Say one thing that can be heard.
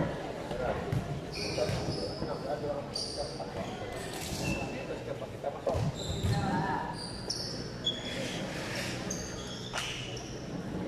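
A volleyball is struck with a hard slap.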